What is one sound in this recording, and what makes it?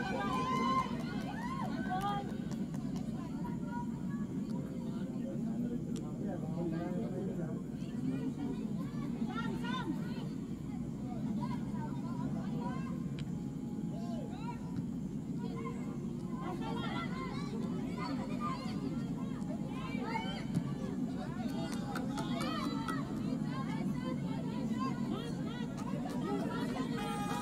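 Young women shout to each other across an open pitch outdoors.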